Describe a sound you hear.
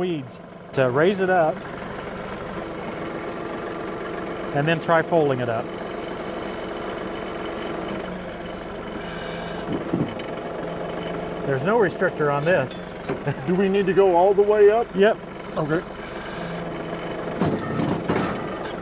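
A tractor engine idles steadily.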